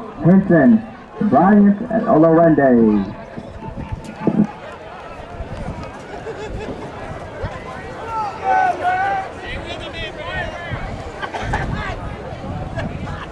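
A crowd murmurs and cheers outdoors in the distance.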